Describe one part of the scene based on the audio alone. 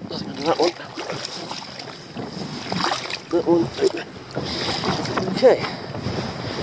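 Seawater washes and splashes over rocks.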